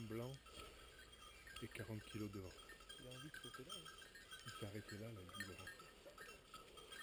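A man talks in a low voice nearby.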